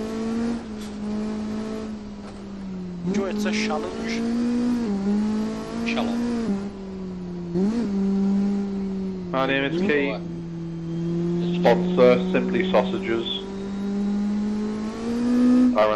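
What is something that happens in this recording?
A racing car engine drones steadily, its pitch rising and dipping with each gear change.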